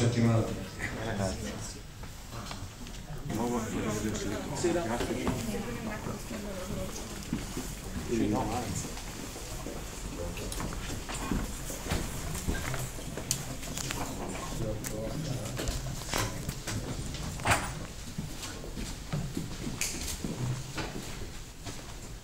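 Men talk nearby in an echoing room.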